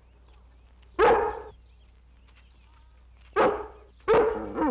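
A dog barks loudly nearby.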